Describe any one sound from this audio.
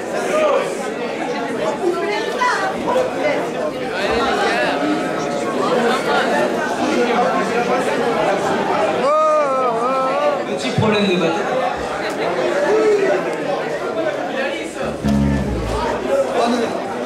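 A band plays live music loudly through amplifiers.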